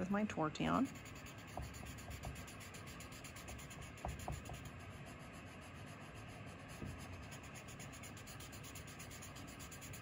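A soft eraser rubs on paper.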